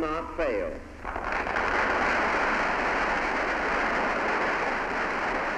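A large crowd applauds loudly in an echoing hall.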